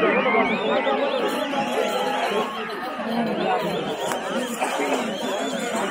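A large outdoor crowd chatters, shouts and cheers loudly.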